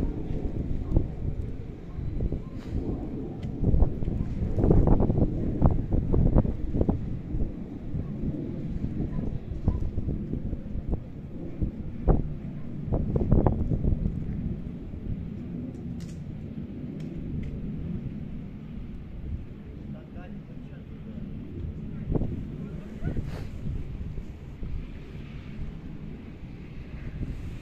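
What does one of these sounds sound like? Wind blusters across an open outdoor space.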